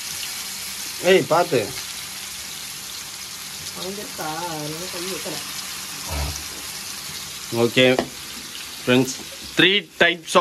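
A woman talks close by in short bursts.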